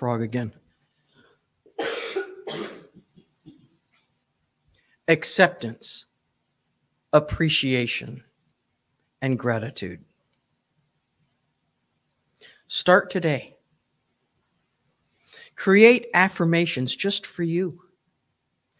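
A woman speaks slowly and calmly into a microphone, with pauses between phrases.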